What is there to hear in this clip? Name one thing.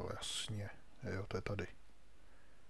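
A pickaxe chips at stone.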